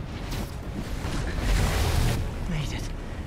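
Wind rushes loudly past during a fast fall through the air.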